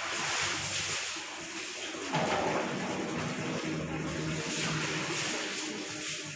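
Water is poured and splashes onto stone.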